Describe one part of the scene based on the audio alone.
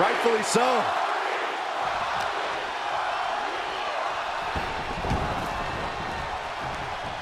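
A large crowd roars and cheers steadily in a big echoing arena.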